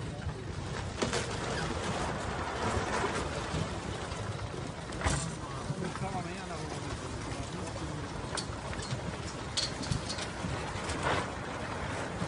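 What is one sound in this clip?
A wooden house cracks and crashes as it collapses.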